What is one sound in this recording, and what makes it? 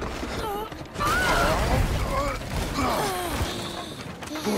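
A loud crash of splintering wood and debris bursts out.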